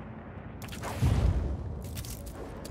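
A parachute snaps open with a loud whoosh and flapping.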